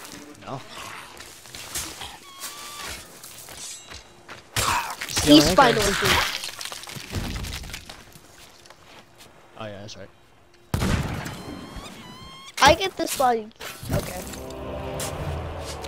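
A sword swishes and strikes with sharp metallic hits.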